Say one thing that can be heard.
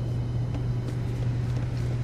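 Footsteps clank on metal stairs.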